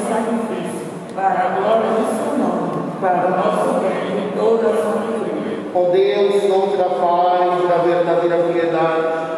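A man sings a slow chant through a microphone in a large echoing hall.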